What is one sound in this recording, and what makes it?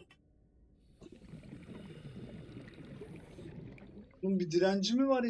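Air bubbles gurgle and rush underwater.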